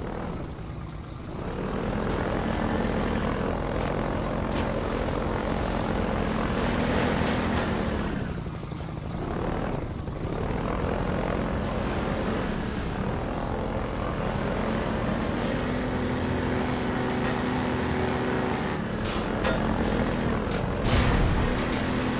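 Water splashes against a boat hull.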